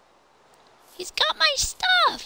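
A game zombie groans.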